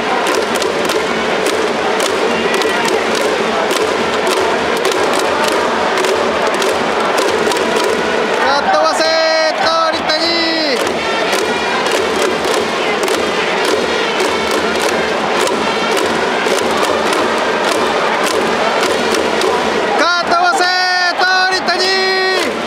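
Fans clap in a steady, quick rhythm.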